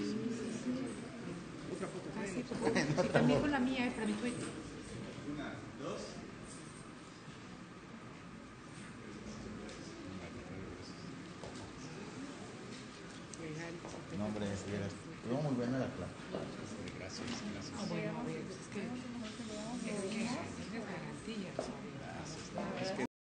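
A man and a woman talk nearby.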